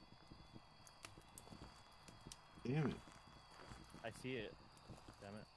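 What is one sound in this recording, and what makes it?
A campfire crackles softly nearby.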